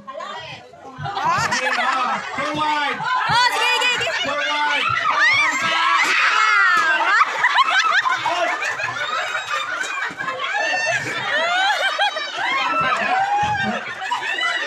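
A crowd of young women and men shout and laugh loudly close by.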